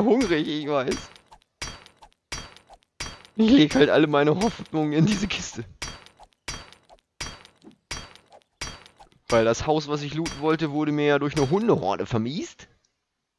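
A stone axe strikes a hard surface again and again with short, dull knocks.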